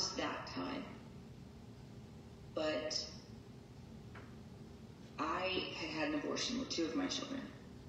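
A woman speaks calmly through loudspeakers in a large room, with pauses.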